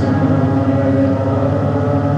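A man strums an acoustic guitar.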